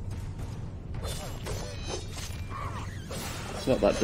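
A creature snarls and shrieks as it is hit.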